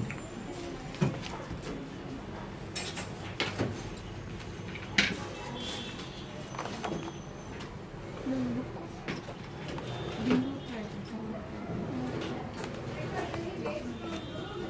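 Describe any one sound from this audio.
Stiff pages of a binder rustle and flap as they are turned.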